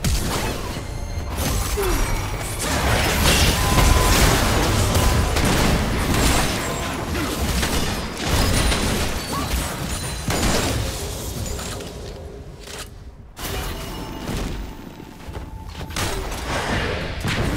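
Spell blasts and hits crash and whoosh in a fast game battle.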